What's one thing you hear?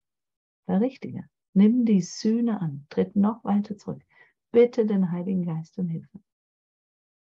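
A middle-aged woman speaks with animation through an online call.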